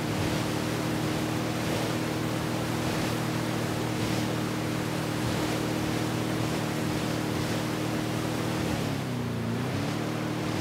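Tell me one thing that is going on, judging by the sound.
A boat engine hums steadily, dipping in pitch briefly as the boat turns.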